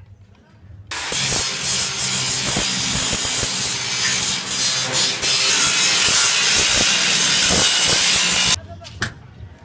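An angle grinder screeches loudly against steel.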